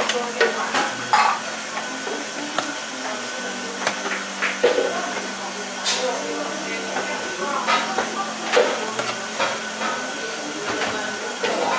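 A metal ladle clinks and scrapes against a metal bowl.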